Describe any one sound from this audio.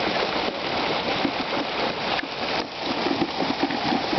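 Water splashes in a tub as a hand reaches among live fish.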